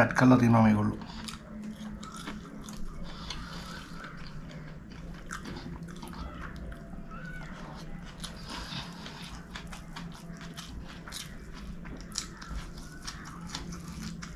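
A man chews food with wet, smacking sounds.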